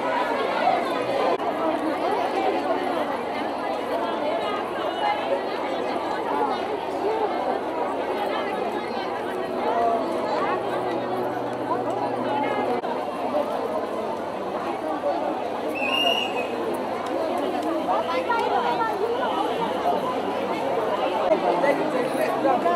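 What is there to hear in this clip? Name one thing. A large crowd of women chatters all around, close by, outdoors.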